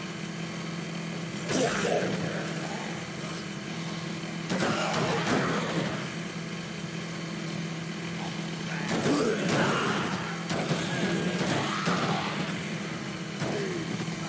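A small motor hums steadily.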